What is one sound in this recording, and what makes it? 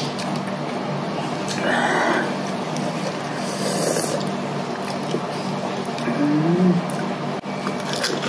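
A young woman chews and munches crunchy lettuce up close.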